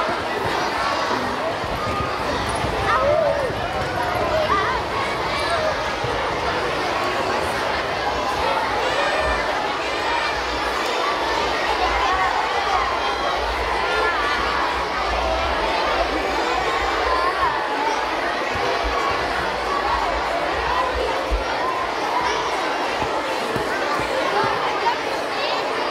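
A large crowd of children chatters and calls out loudly in an echoing hall.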